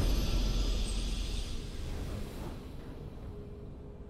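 A bright, triumphant game chime rings out and fades away.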